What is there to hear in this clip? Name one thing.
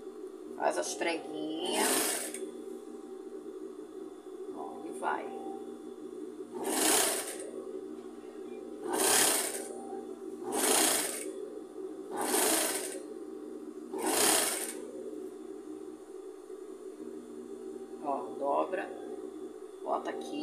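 A sewing machine motor hums steadily.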